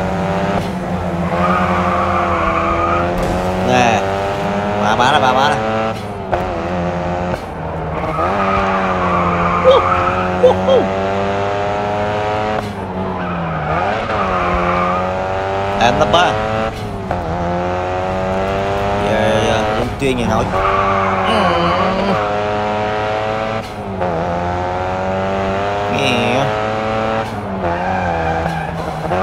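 A racing car engine revs high, rising and falling as the car changes gear.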